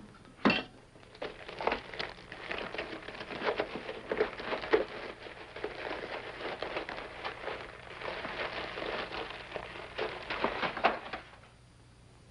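Powder pours into a glass jug with a soft rustle.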